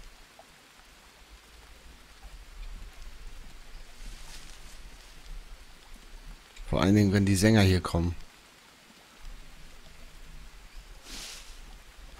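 Footsteps tread softly along a muddy path.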